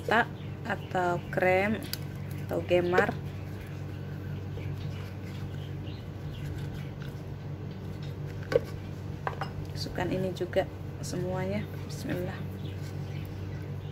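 Thick cream pours from a carton with a soft gurgle.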